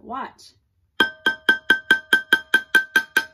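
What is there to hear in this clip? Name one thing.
A stick taps rapidly on a metal pot with a ringing tone.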